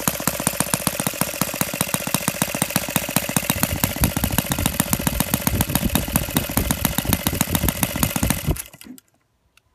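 A small model engine runs loudly with a fast, rattling buzz, then cuts out.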